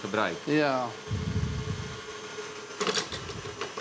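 An electric mixer whirs steadily.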